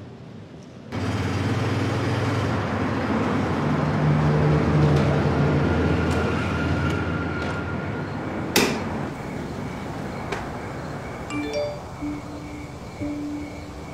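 A motor scooter engine hums steadily nearby.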